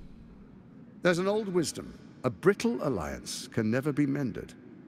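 A man speaks slowly and smoothly in a low, calm voice, close up.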